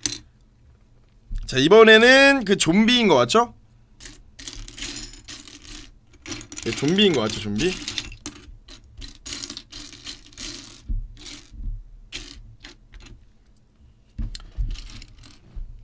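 Small plastic bricks click and rattle.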